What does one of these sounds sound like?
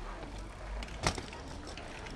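A bicycle lands on concrete with a sharp clatter.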